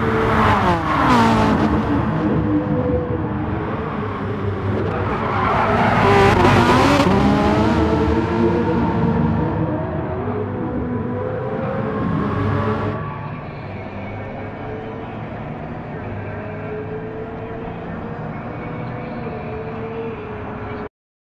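A sports car engine roars and revs up and down as it races past.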